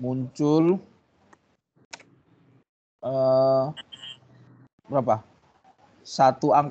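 A man speaks calmly with pauses over an online call.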